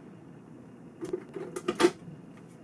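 A button clicks on a cassette machine.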